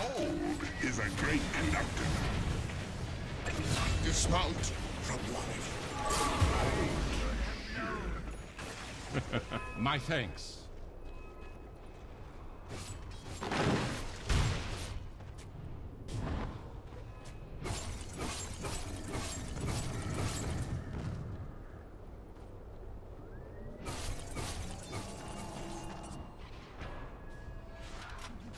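Game spell effects whoosh and crackle amid clashing blows.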